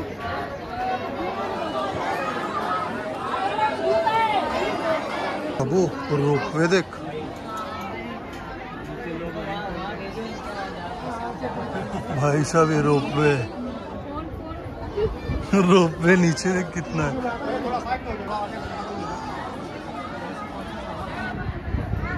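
A crowd of people chatter on all sides.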